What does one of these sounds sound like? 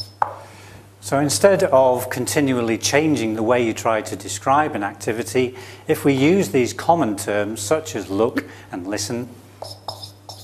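A middle-aged man speaks calmly through a clip-on microphone.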